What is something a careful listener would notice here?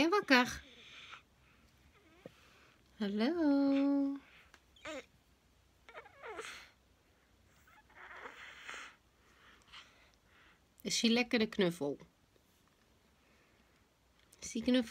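A baby babbles and coos up close.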